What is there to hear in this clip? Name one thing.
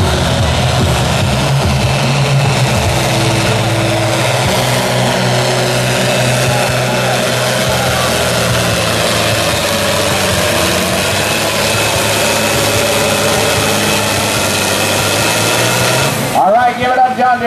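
A tractor's diesel engine roars loudly and steadily under heavy strain.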